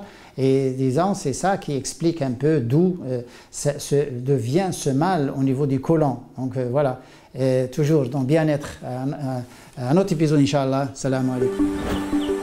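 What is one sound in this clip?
An older man speaks calmly and clearly into a close microphone.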